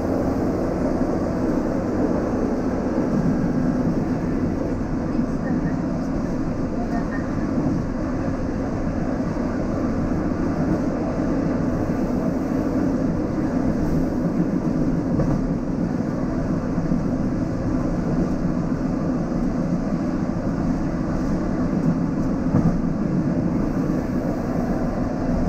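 A diesel railcar runs along the track with a steady rumble.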